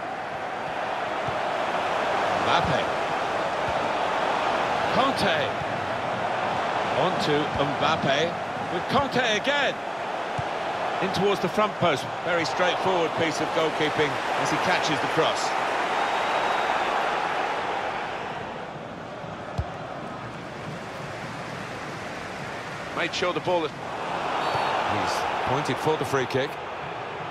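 A stadium crowd murmurs and roars.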